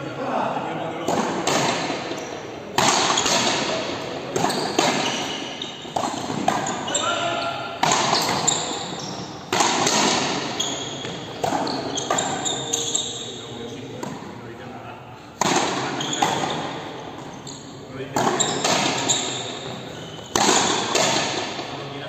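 A frontenis ball is struck by rackets and slams against a front wall in a large echoing hall.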